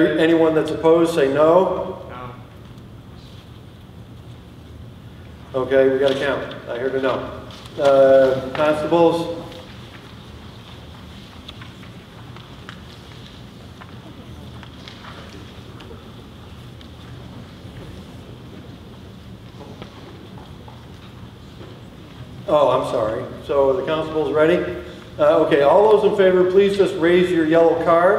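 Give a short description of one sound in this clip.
A man speaks calmly through a microphone in short bursts with long pauses.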